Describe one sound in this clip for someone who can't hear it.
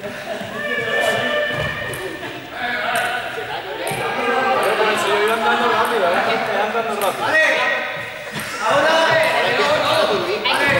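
Young men and women talk and chatter nearby in a large echoing hall.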